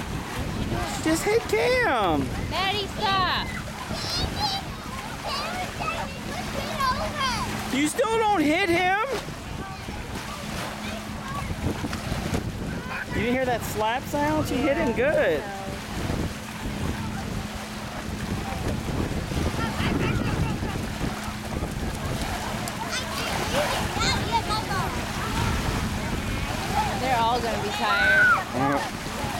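Water splashes as children wade and paddle.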